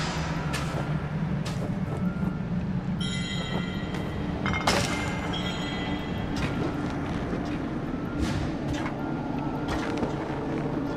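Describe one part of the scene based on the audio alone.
Calm game music plays steadily.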